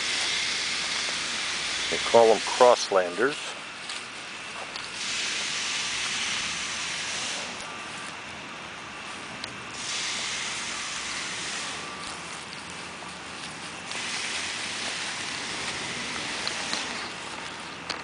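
A truck engine idles steadily.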